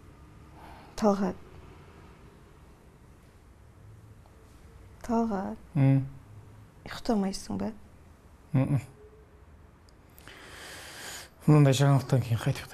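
A man speaks in short, quiet phrases close by.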